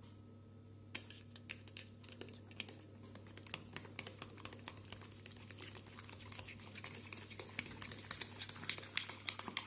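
A spoon scrapes and taps against a cup.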